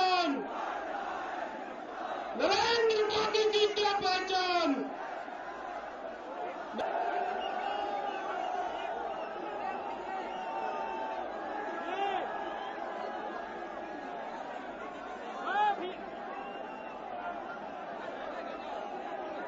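A crowd of people chatters and calls out outdoors.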